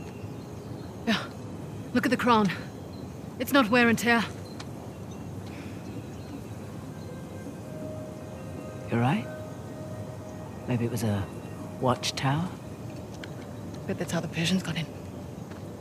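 A second young woman answers calmly, close by.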